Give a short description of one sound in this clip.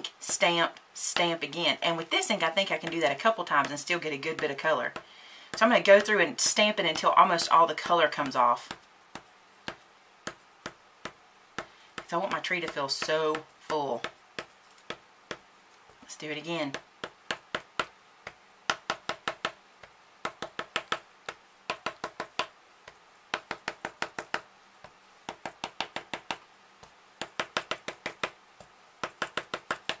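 A sponge dauber taps lightly and rapidly on paper.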